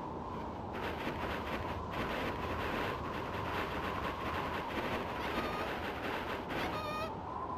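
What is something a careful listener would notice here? A wolf's paws patter across snow.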